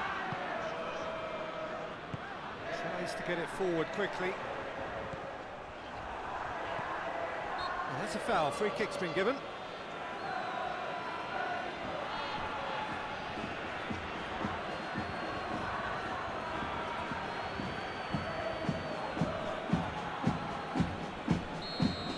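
A large stadium crowd murmurs steadily.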